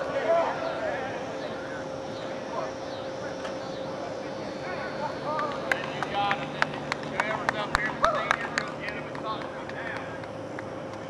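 A crowd of young men shouts and cheers outdoors.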